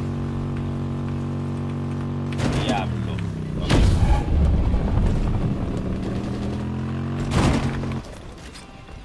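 A motorcycle engine hums steadily, its pitch dipping and rising as it slows and speeds up.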